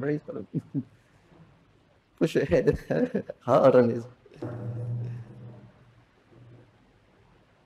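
An elderly man speaks calmly and warmly into a microphone, with pauses.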